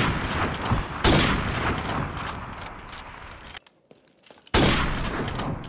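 A sniper rifle fires loud, sharp shots that echo and fade.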